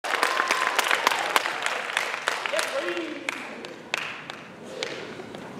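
An audience applauds in an echoing hall and the clapping dies away.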